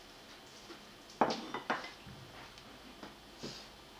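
A ceramic bowl clinks as it is picked up.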